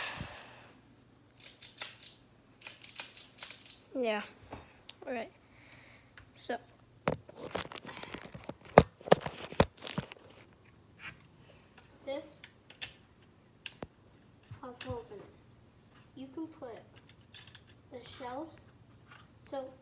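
A toy gun's parts click and clack as it is handled.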